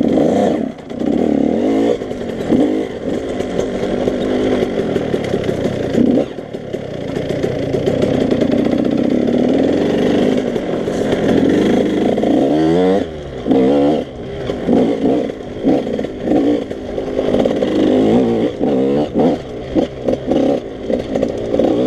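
A dirt bike engine revs loudly up close, rising and falling as the throttle opens and closes.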